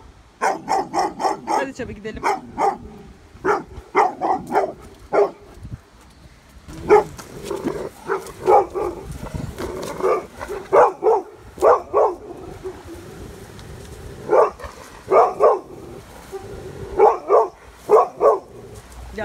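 A dog barks repeatedly nearby.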